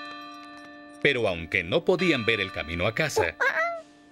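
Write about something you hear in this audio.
A cartoon monkey chatters excitedly.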